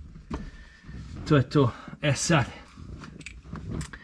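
A ratchet wrench clicks in quick bursts.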